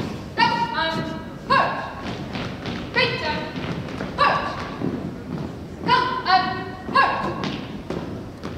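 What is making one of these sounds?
A young man calls out loud marching commands in a large echoing hall.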